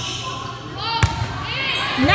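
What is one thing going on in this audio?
A volleyball is struck with a sharp smack in a large echoing hall.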